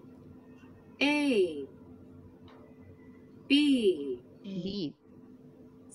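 A woman speaks in short, drawn-out words over an online call.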